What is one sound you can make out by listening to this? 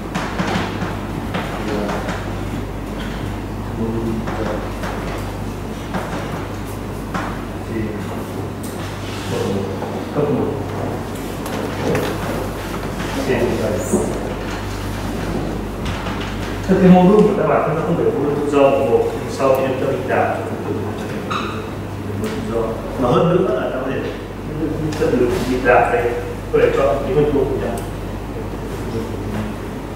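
A man lectures calmly.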